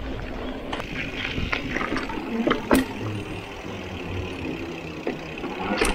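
Bicycle tyres thump across wooden bridge boards.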